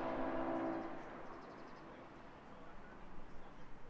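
A car rolls up slowly and stops.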